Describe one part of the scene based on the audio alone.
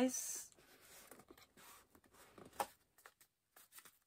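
A cardboard drawer slides open with a soft scrape.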